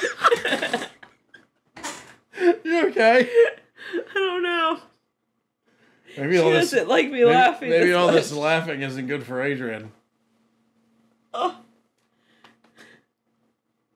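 A young woman laughs and talks close by.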